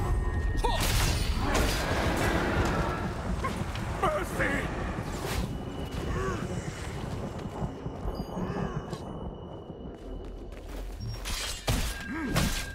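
Sword blows land with sharp, crackling hits.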